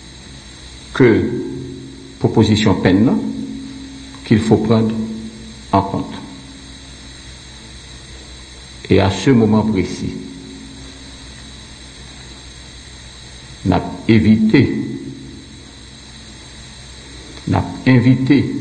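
A middle-aged man speaks slowly and deliberately into a microphone, in an echoing room, with long pauses.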